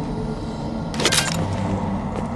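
A gun fires a short burst of shots.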